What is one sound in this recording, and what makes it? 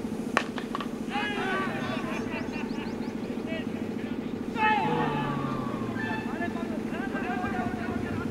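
Young men on a field shout and appeal loudly.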